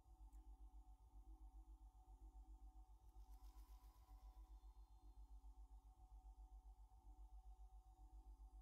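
A man talks quietly into a microphone.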